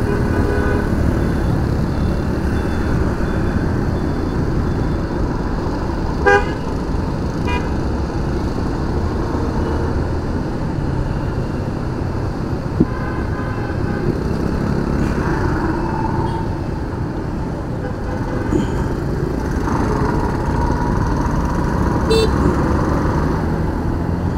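Traffic engines hum and rumble all around.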